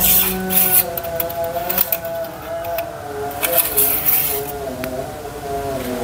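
A thin metal rod scrapes and clicks as it slides out of an engine.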